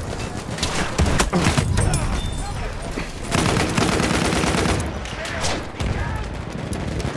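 Gunfire cracks in rapid bursts.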